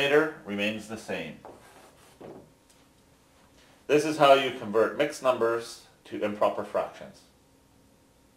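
A middle-aged man speaks calmly and clearly, close by, explaining.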